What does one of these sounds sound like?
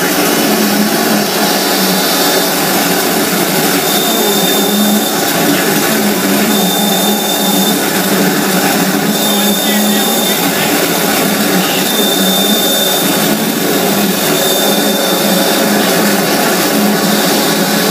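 Loud, droning electronic music plays through loudspeakers, with a steady hum and high tones.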